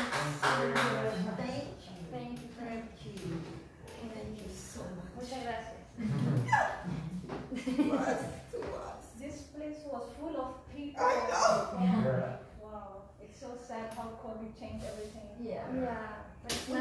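An adult woman speaks with animation nearby.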